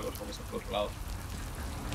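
A young man talks quietly into a microphone.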